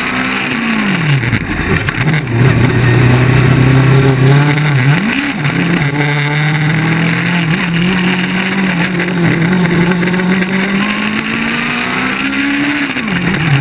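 A race car engine revs up and down loudly, changing gear as it corners.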